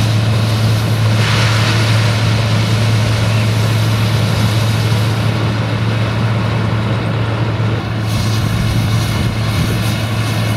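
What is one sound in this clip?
Chopped corn pours into a trailer with a rushing hiss.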